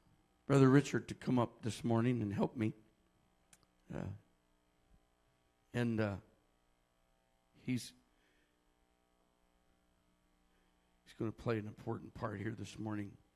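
A man speaks with animation into a microphone in a large echoing room.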